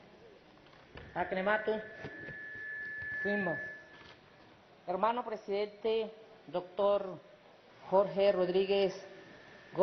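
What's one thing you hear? A woman speaks calmly into a microphone, pausing often.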